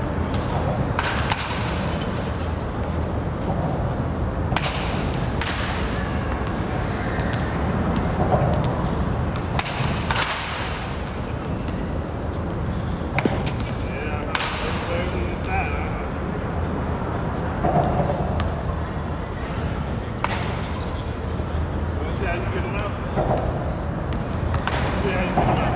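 A bat cracks against a baseball again and again.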